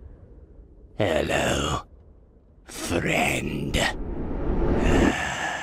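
A man speaks in a low, menacing voice.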